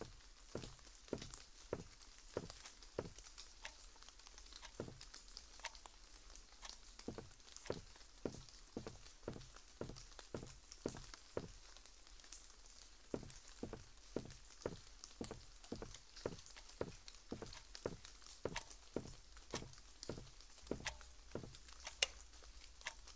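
Footsteps thud slowly and steadily on a hard floor.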